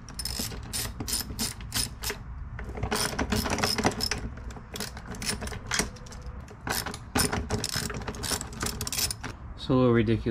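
A plastic dolly clatters and knocks as it is handled.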